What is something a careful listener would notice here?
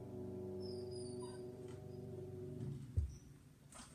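A piano plays chords that ring out and fade.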